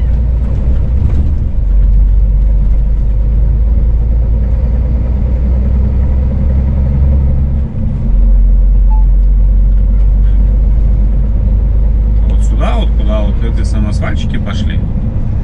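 Wind rumbles loudly against a moving vehicle.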